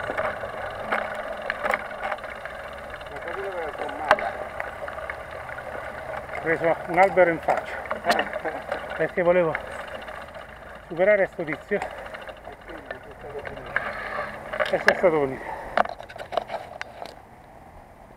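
Bicycle tyres roll and crunch over a dirt track.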